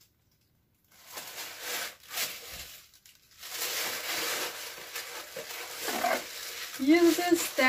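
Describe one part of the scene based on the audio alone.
Paper rustles and crinkles as a gift bag is opened.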